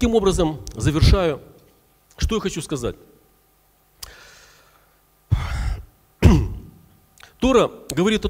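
A middle-aged man speaks earnestly into a microphone, with pauses, in a reverberant hall.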